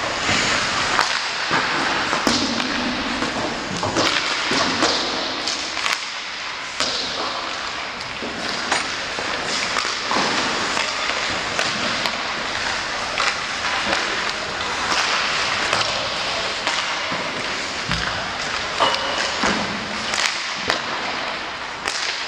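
Hockey sticks crack against pucks in an echoing ice rink.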